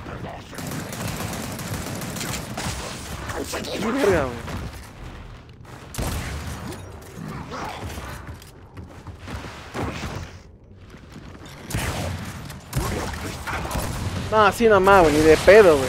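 Gunfire bursts out in quick blasts.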